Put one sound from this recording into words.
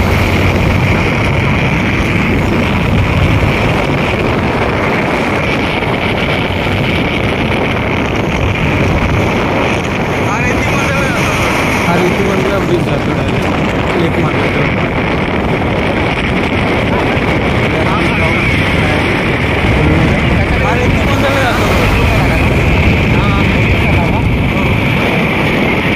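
Wind rushes loudly past a moving vehicle on the open road.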